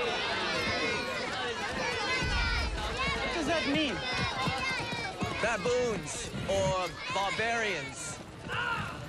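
Children cheer and shout excitedly.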